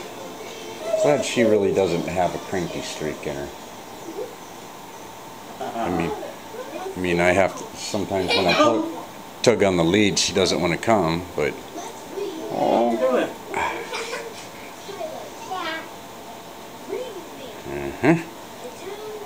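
A toddler babbles and chatters nearby.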